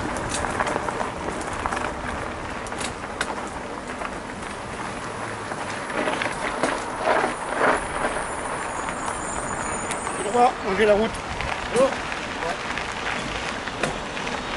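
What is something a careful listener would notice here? Bicycle tyres crunch over a gravel trail.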